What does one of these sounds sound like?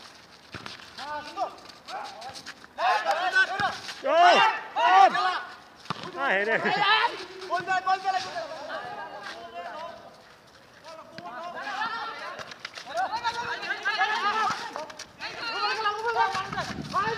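Young men shout and call out excitedly to each other outdoors.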